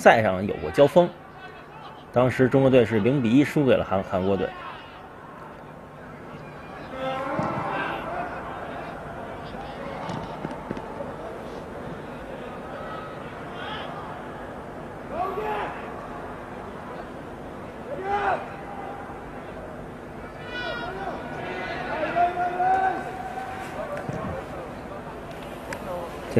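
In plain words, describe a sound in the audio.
A crowd murmurs and calls out across a large open stadium.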